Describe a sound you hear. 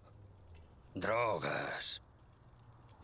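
An older man speaks slowly in a low, gravelly voice, close by.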